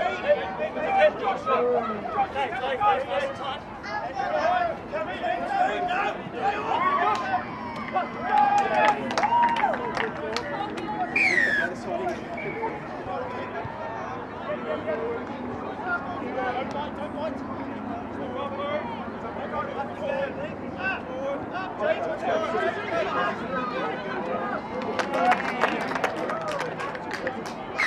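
Young men and women shout and call to each other from a distance outdoors.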